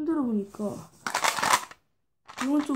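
A small box rattles as it is shaken.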